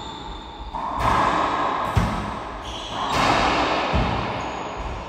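A racquetball smacks hard off the walls with sharp, echoing bangs.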